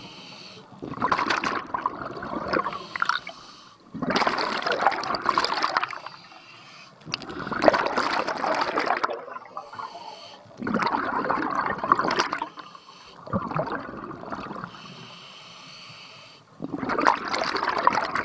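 Bubbles rush and gurgle loudly from a diver's exhale, in bursts every few seconds.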